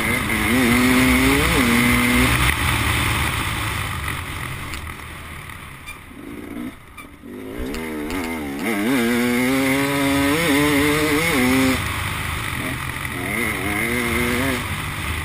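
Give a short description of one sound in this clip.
A dirt bike engine revs up and down as it rides.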